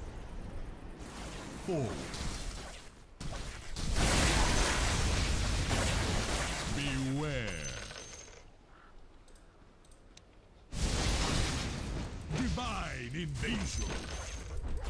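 Electric lightning crackles and booms in loud bursts.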